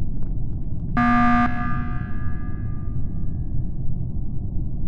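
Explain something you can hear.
A loud alarm blares once and rings out.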